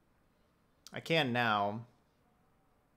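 A young man lets out a loud, drawn-out exclamation.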